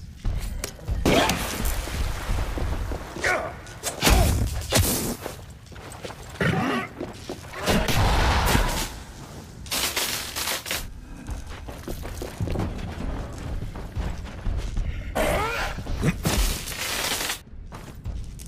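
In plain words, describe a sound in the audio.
A monster snarls and shrieks up close.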